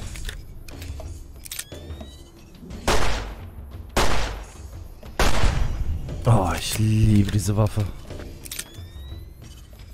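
A revolver's cylinder clicks open and shut during reloading.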